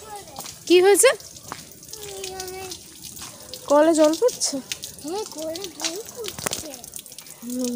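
Water trickles from a pipe into a puddle.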